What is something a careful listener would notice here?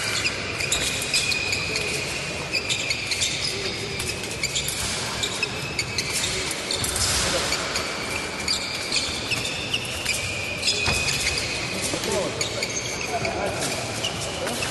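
Fencing blades clink and scrape together.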